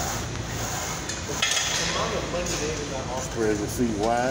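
Weight plates clank on an exercise machine.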